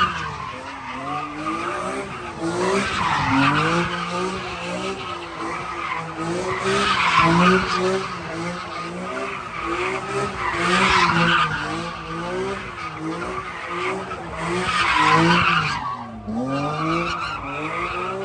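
Tyres screech on the road as a car spins.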